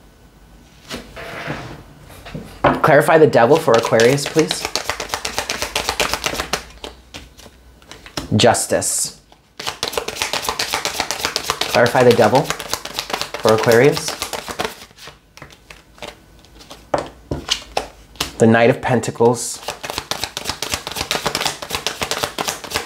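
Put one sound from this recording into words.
Playing cards riffle and shuffle with quick papery flicks.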